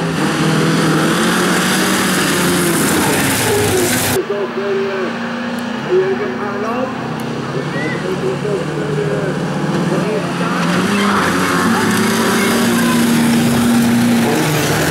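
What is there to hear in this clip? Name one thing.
Car tyres skid and crunch over loose dirt.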